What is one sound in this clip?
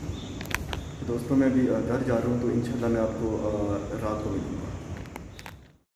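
A young man talks calmly, close by.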